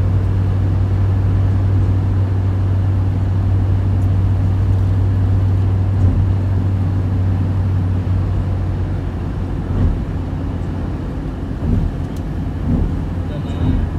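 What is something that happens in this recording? Tyres rumble on the road.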